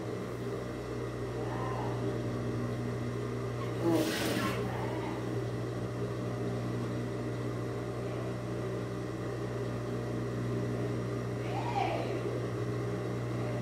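A sewing machine stitches fabric.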